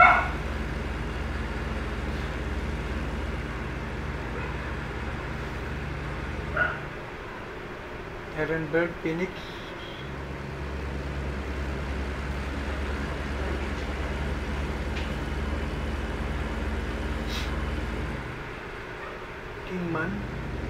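A truck engine drones low and steady, easing off now and then.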